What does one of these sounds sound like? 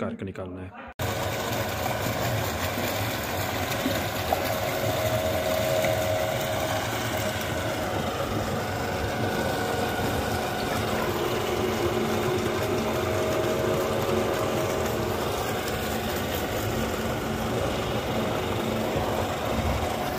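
A machine motor runs with a steady, loud droning hum.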